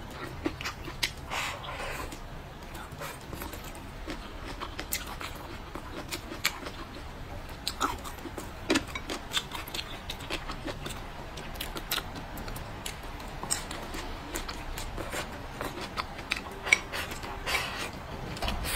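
A young woman slurps food close up.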